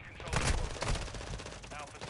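Heavy blows thud in a close fight.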